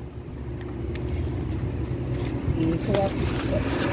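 Paper rustles and crinkles in a person's hands.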